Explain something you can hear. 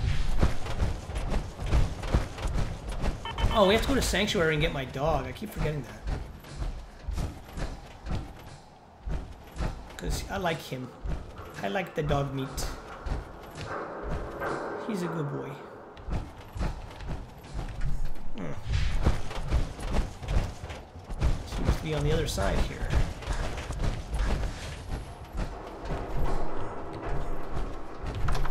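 Heavy metal footsteps thud steadily on a hard floor.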